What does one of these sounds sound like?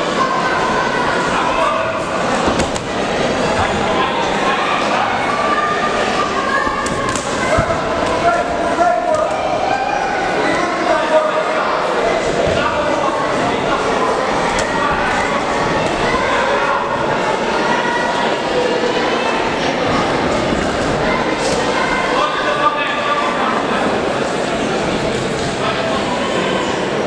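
A crowd of spectators shouts and cheers throughout in a large echoing hall.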